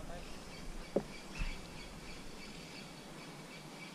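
A small fish splashes as it is pulled out of the water.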